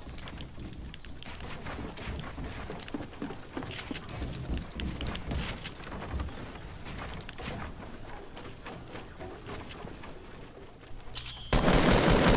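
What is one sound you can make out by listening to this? Wooden walls clatter and knock as they are quickly built.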